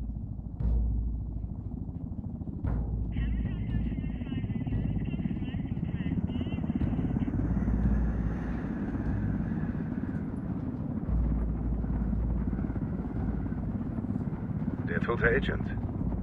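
A helicopter engine rumbles low and steady.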